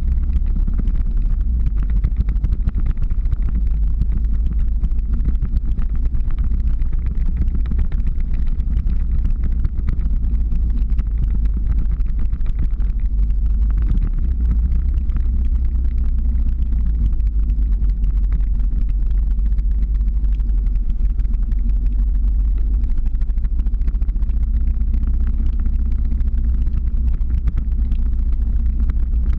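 Strong wind buffets the microphone with a steady low roar.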